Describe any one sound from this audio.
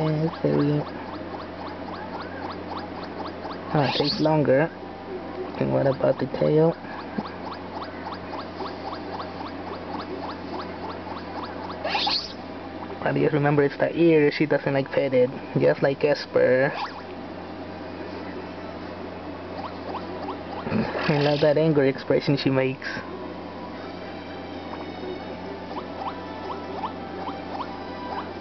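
Cheerful electronic game music plays from a small speaker.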